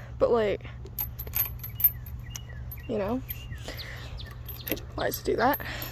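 A metal chain clinks and rattles.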